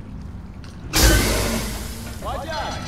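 A heavy metal hatch bursts open with a loud hiss.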